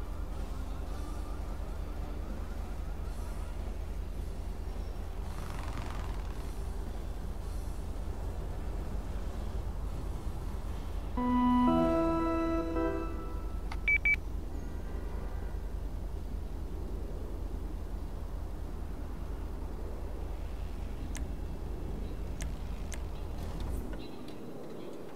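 A car engine idles with a low, steady rumble.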